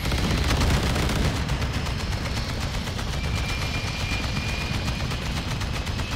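A jet explodes under cannon fire.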